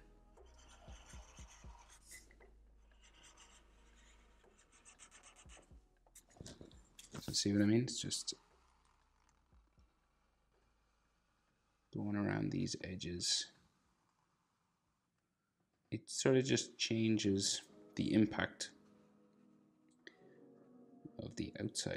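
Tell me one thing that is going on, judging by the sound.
A felt-tip marker squeaks and scratches across paper.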